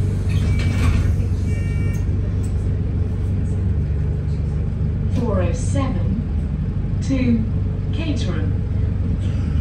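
A bus engine rumbles low and steady from inside the cabin.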